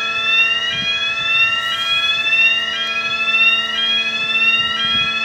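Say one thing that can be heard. A level crossing alarm sounds steadily, with a tone that keeps rising in repeated sweeps.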